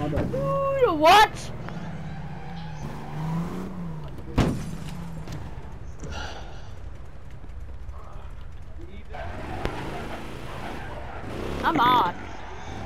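A car engine rumbles and revs.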